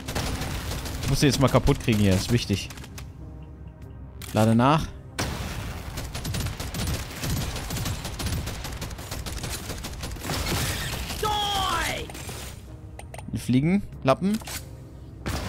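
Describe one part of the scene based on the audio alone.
Creatures screech and roar in a video game.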